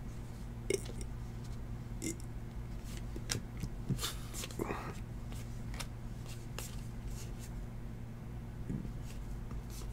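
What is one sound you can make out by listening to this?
Trading cards shuffle and flick against each other in quick, papery rustles.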